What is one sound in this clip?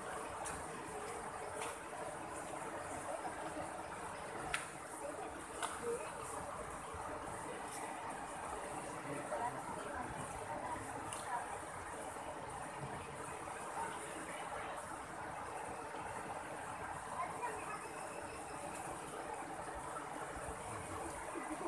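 A river rushes steadily over rocks.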